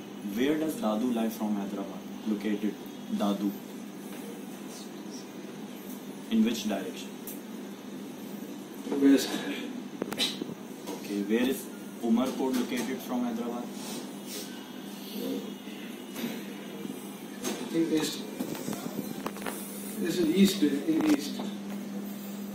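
A young man speaks calmly nearby.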